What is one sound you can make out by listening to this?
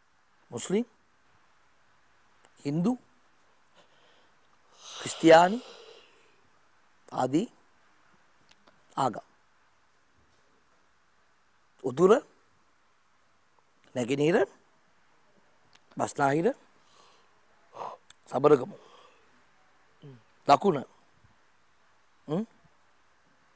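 A man speaks in short bursts close to a microphone, with long pauses.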